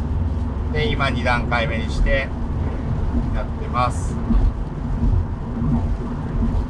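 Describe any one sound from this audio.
Windscreen wipers sweep back and forth.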